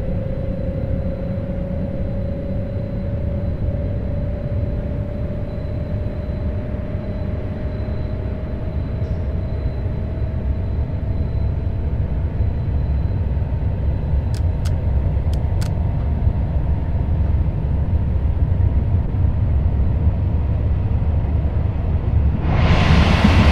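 Train wheels rumble steadily on the rails.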